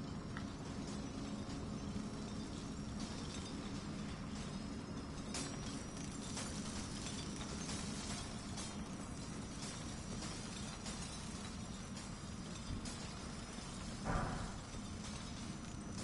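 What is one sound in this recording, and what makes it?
Footsteps crunch on a rocky floor.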